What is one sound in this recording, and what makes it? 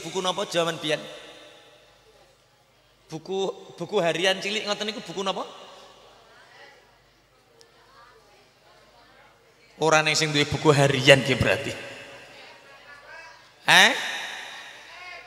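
A man speaks with animation into a microphone, heard through loudspeakers in a reverberant hall.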